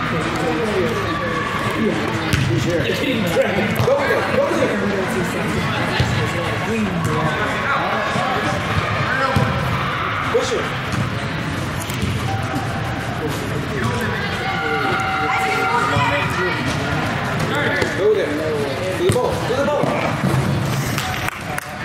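Young players shout and call out across a large echoing hall.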